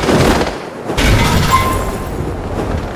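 A parachute opens with a sudden loud whoosh.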